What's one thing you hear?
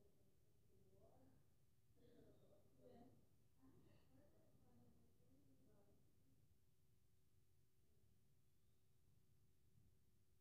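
A crowd murmurs faintly through a television speaker.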